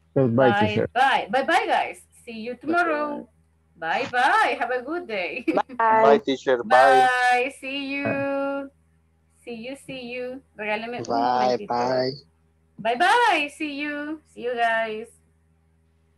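A young woman speaks with animation through a headset microphone on an online call.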